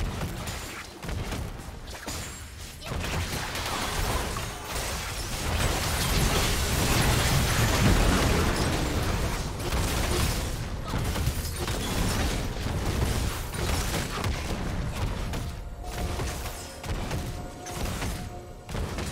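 Video game spell effects blast and crackle during a fight.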